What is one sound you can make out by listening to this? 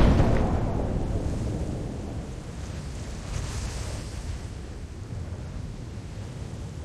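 Wind flutters softly after the parachute opens.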